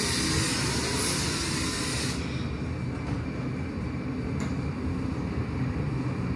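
A glass furnace roars steadily.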